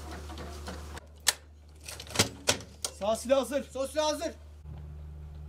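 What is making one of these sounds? Metal clanks as a heavy machine gun is loaded.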